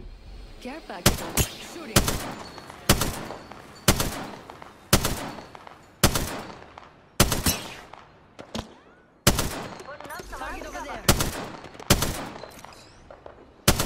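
A rifle fires loud single shots at a steady pace, each echoing away.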